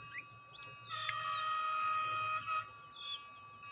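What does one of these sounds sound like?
A train horn sounds loudly.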